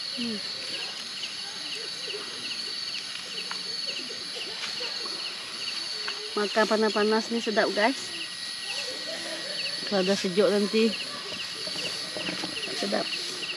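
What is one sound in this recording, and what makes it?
Fish sizzles softly on a charcoal grill.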